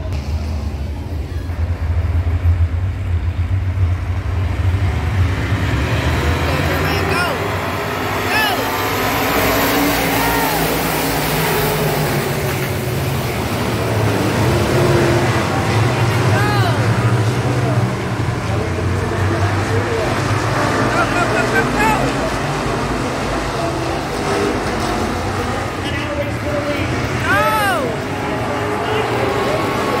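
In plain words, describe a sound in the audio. Race car engines roar loudly around a dirt track outdoors.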